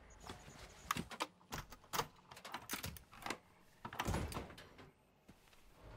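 Sharp clicks and knocks sound close by.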